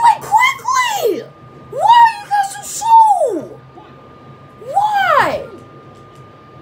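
A boy sings loudly and dramatically into a nearby microphone.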